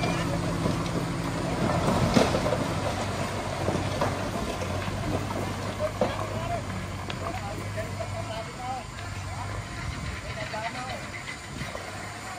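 A truck engine idles steadily nearby.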